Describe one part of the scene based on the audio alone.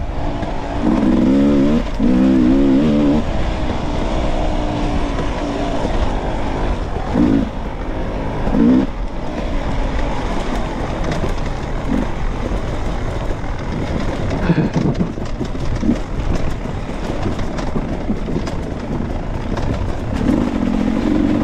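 Tyres crunch over dirt and dry leaves.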